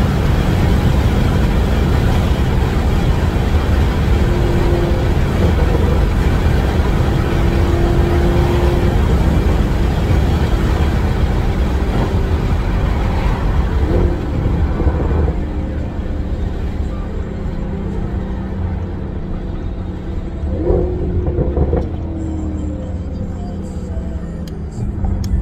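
A car engine hums with a low road rumble from inside the car.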